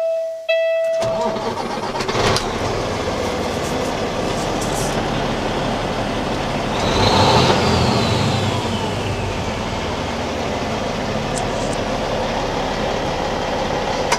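A diesel truck engine starts and idles with a steady rumble.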